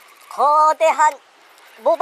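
A fishing reel winds with a soft ticking whirr.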